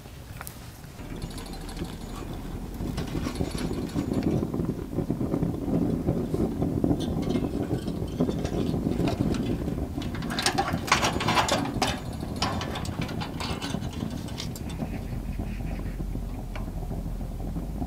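A fire crackles and roars inside a small stove.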